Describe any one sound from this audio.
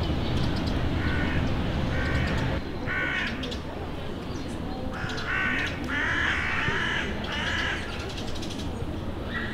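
Birds chirp in the trees.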